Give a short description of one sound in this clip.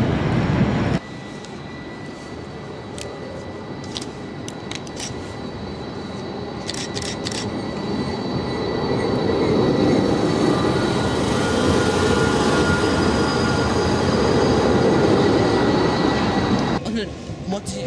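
A tram approaches and rolls past close by with a loud rumble.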